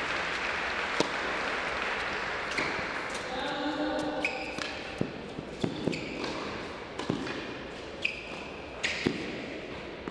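A tennis ball thuds sharply against a racket and the court.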